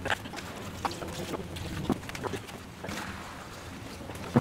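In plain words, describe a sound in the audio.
Liquid pours and splashes into a container.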